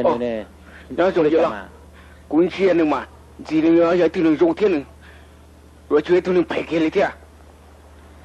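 A man speaks calmly and low, close by.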